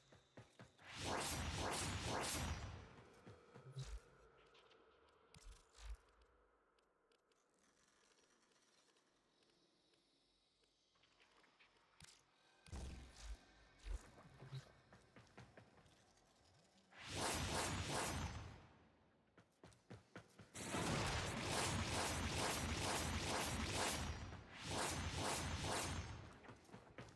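A loud rushing whoosh sweeps past in bursts.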